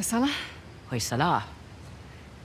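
A second woman answers briefly in a calm voice.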